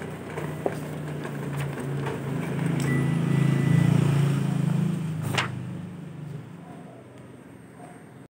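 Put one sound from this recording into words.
Sheets of paper rustle.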